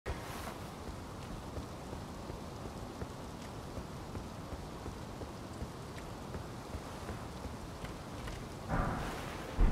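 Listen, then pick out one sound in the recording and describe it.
Footsteps run steadily over stone.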